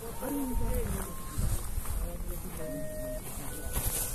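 Footsteps brush through dry grass.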